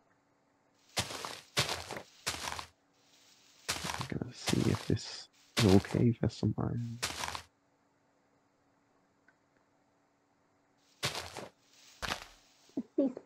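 A chopping tool breaks blocks with repeated dry crunching knocks.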